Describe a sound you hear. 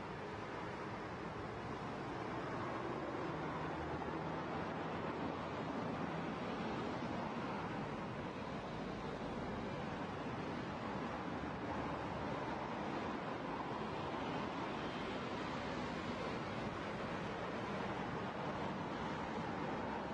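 A car's engine runs with a low drone.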